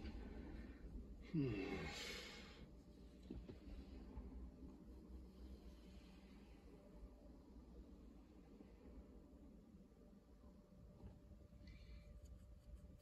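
A car's engine and road noise rumble low from inside the cabin.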